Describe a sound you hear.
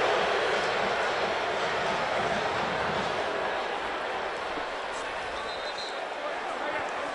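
A large stadium crowd roars steadily, loud and echoing outdoors.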